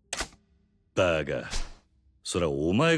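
A second man answers in a calm, low voice, close by.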